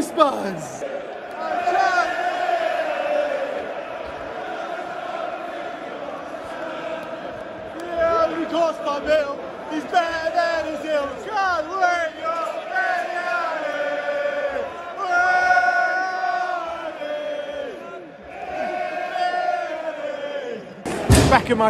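A large crowd sings and chants loudly in a stadium.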